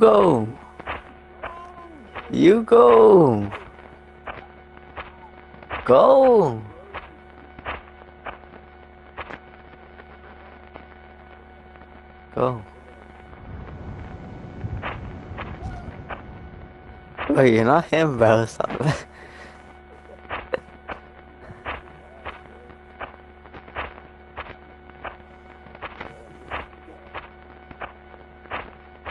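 Footsteps tread steadily on dry ground.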